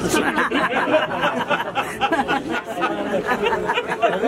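A woman laughs softly close by.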